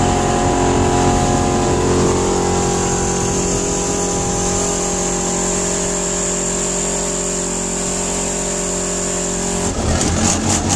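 An outboard motor idles with a steady hum.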